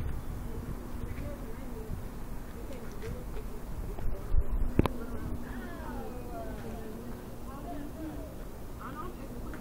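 A man talks at a distance outdoors.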